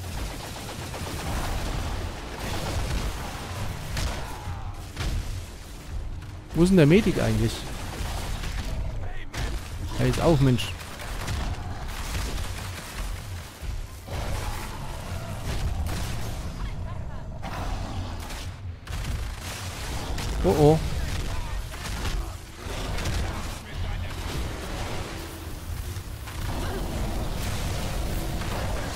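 Electric beams crackle and hum.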